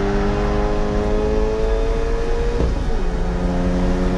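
A race car engine hums as the car drives along a track.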